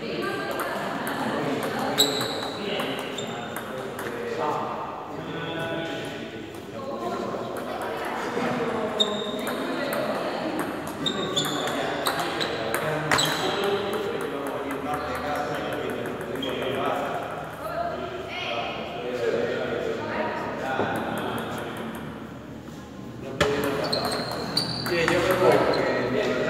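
A table tennis ball clicks back and forth between paddles and the table in a quick rally.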